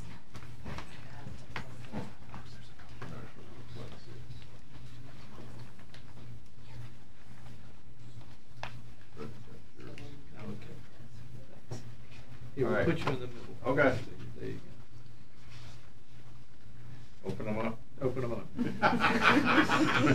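Elderly men talk quietly nearby.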